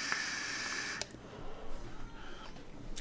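A man exhales a long breath.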